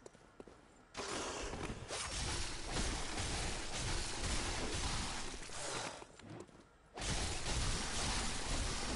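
Blades slash and strike flesh in a fierce fight.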